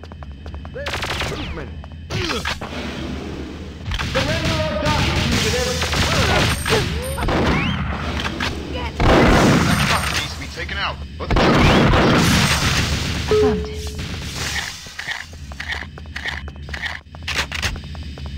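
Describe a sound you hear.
Gunfire bursts rapidly from a game weapon.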